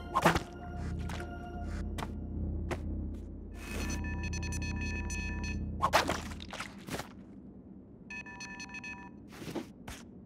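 Bright chiming video game tones play in short bursts.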